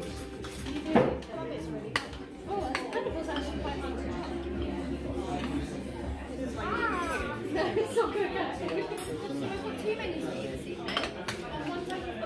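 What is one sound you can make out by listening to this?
Metal spoons clink against plates.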